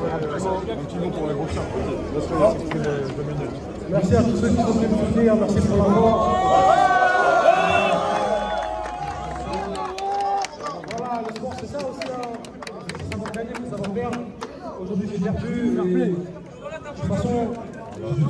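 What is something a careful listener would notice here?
A man speaks loudly with animation through a handheld microphone.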